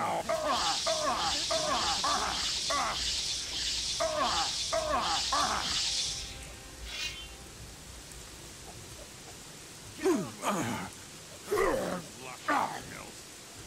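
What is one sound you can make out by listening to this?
Metal swords clash and ring in a fight.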